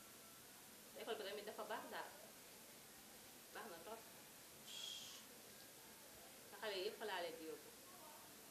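A middle-aged woman speaks calmly nearby, in short phrases.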